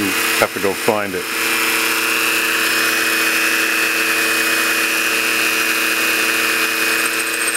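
A rotary tool whines steadily at high speed.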